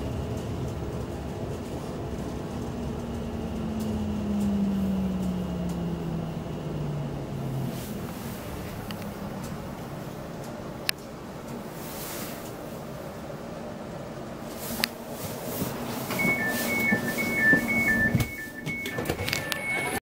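A train rumbles along the tracks, its motor whine falling in pitch.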